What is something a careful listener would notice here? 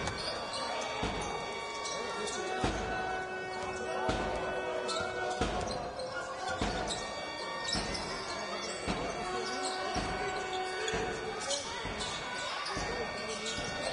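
A basketball bounces steadily on a wooden floor.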